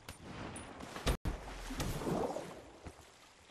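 Water splashes and bubbles as a body plunges in.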